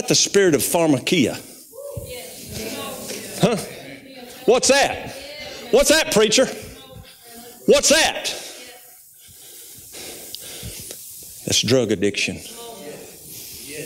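A middle-aged man speaks with animation through a microphone in a large echoing hall.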